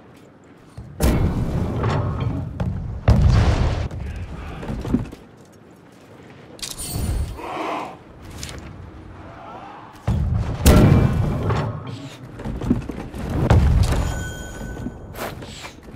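A heavy cannon fires with deep, booming blasts that rumble away.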